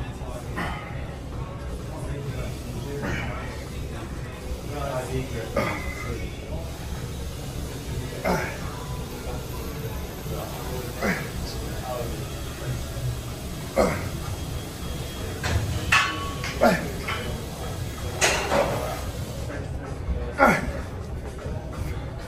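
A barbell clanks as it is lifted and set down.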